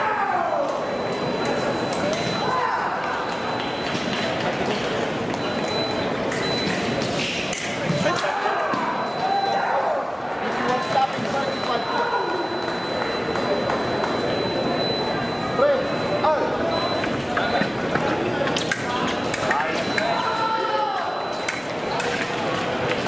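Many people talk at once in a large echoing hall.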